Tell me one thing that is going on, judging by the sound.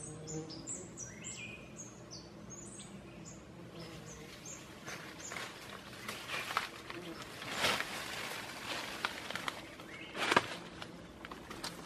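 Dry leaves rustle and crackle as a man climbs down through undergrowth.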